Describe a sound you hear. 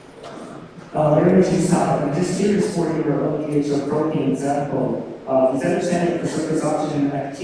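A young woman speaks into a microphone over loudspeakers in a large echoing hall.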